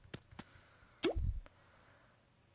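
A short game sound plays as a menu pops open.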